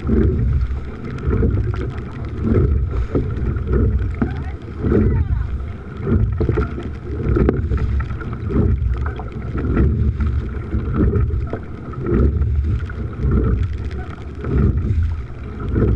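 Waves slap against a boat's hull.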